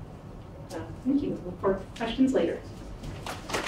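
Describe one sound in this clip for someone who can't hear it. A woman speaks through a microphone in a hall.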